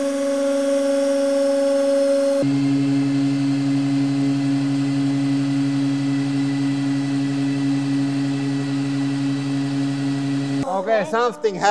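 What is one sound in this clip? A hydraulic press hums steadily, then changes pitch and stops.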